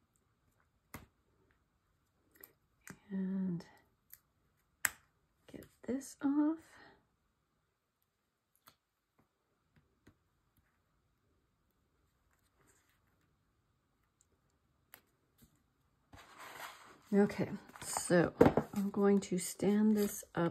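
Stiff card taps and rustles under hands.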